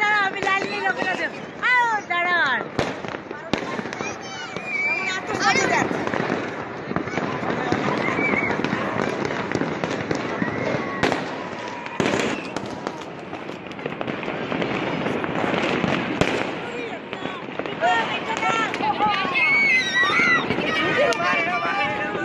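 A crowd of men and women chatter and call out excitedly outdoors.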